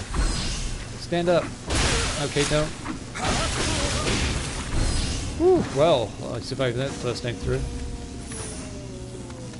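Blades slash and clash in quick bursts.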